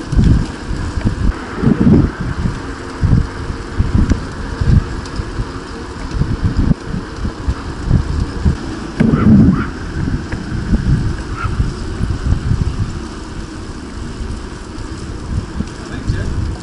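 Bicycle tyres roll on asphalt.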